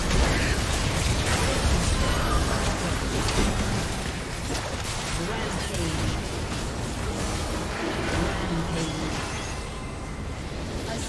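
Game spell blasts and hits clash in a busy, noisy fight.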